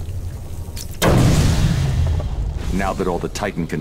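A container blows up with a loud, deep blast.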